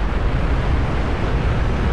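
A fire roars in the distance.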